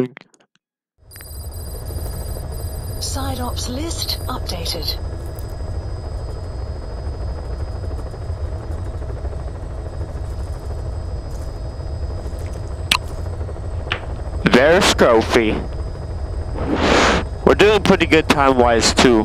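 A helicopter's rotor and engine rumble steadily from inside the cabin.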